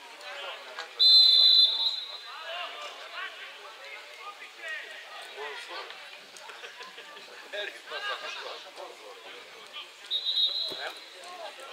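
A referee's whistle blows sharply twice.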